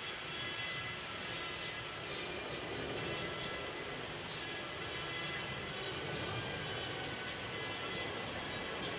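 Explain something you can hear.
Harness bells and fittings jingle rhythmically.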